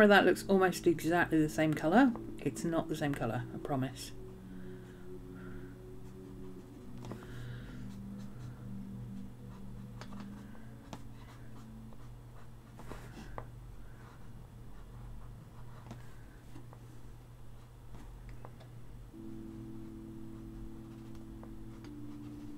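A marker squeaks and scratches softly on paper.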